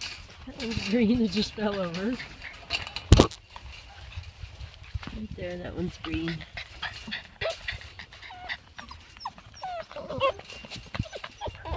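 A wire pen rattles as puppies paw at it.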